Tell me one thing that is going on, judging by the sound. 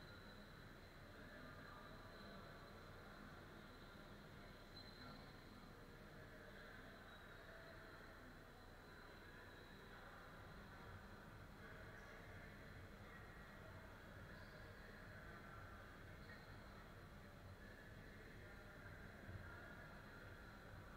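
Distant voices of players and onlookers murmur and echo through a large hall.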